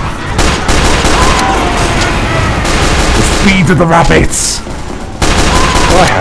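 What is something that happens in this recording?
Pistol shots fire in quick bursts.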